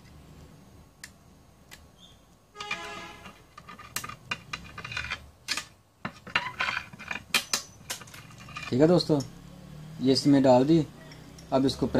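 Small metal parts click and clatter as a tool is handled up close.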